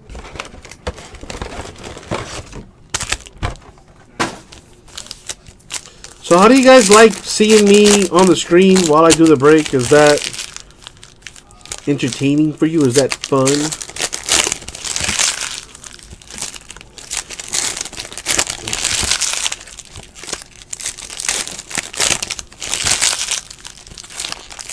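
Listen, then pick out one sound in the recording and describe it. Foil card packs crinkle and rustle as they are torn open.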